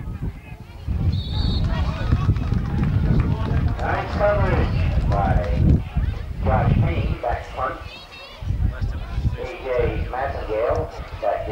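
A crowd of young men cheers and shouts nearby.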